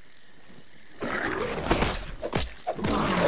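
Slime splatters loudly.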